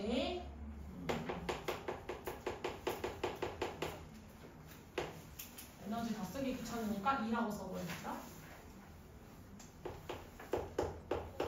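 Chalk taps and scrapes on a board in quick strokes.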